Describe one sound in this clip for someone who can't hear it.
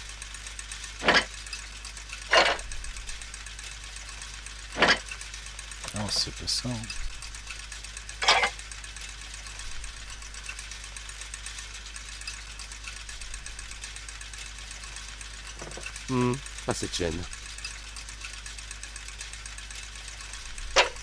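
Metal gears clink and click as they are moved into place.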